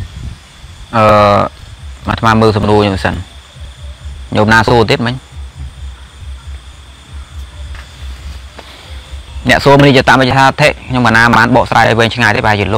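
A young man speaks calmly, close to the microphone.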